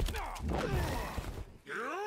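A fiery blast whooshes out.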